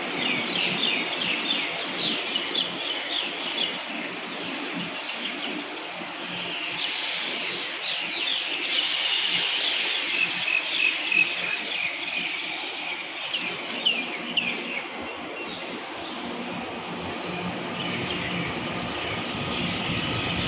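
An electric train rolls into the station and slows with a steady rumble.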